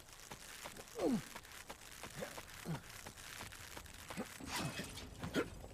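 Hands and boots clank on metal ladder rungs during a climb.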